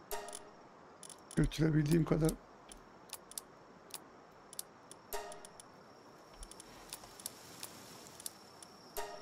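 Short electronic menu chimes sound now and then.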